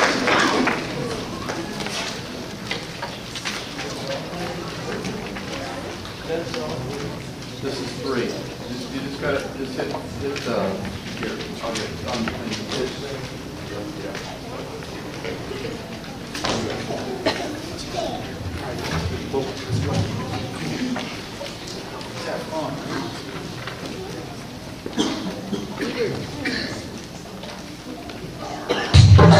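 A middle-aged man talks to a group in an echoing hall.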